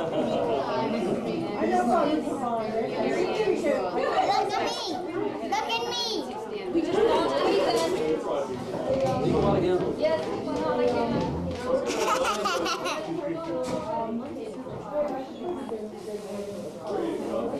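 A young boy makes silly noises close by.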